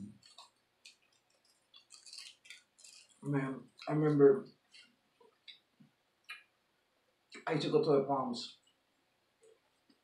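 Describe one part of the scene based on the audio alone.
Tortilla wrappers crinkle and rustle.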